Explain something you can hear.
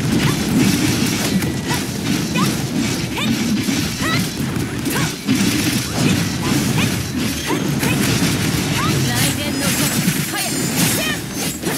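Fast sword slashes and impacts clash again and again.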